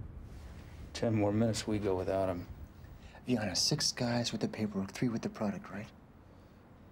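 A man speaks softly up close.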